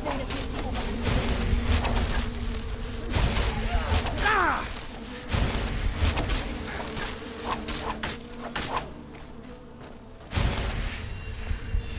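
A magic blast roars and crackles.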